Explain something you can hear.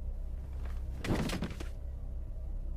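A door thuds shut.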